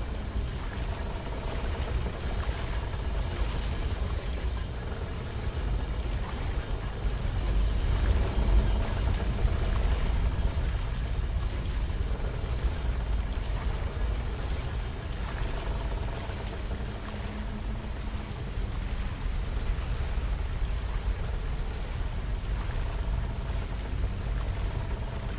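A magical spell hums and crackles steadily close by.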